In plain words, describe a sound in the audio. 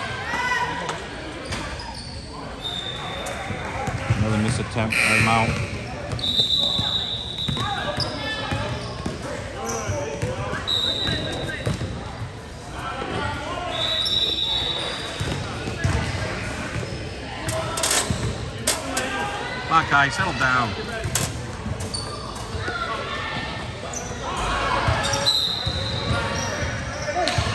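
A crowd of spectators talks and cheers nearby.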